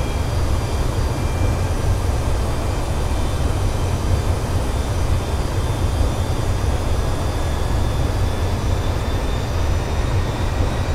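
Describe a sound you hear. An airliner's jet engines roar steadily.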